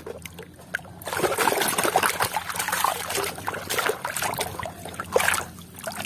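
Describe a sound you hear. Muddy water sloshes and splashes.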